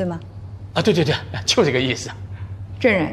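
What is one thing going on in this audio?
A middle-aged man speaks into a microphone.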